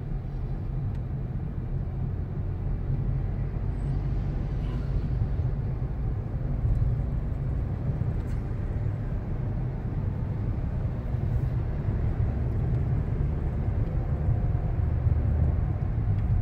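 A car engine hums steadily with a low road rumble.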